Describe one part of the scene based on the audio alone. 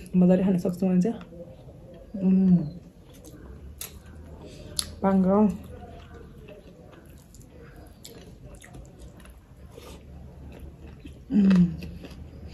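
A young woman chews and smacks her lips close to the microphone.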